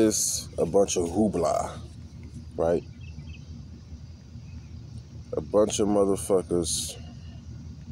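A young man speaks calmly and close by, in short bursts.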